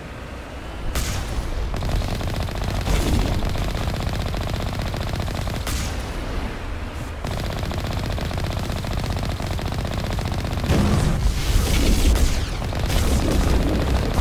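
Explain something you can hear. A vehicle cannon fires sharp blasts.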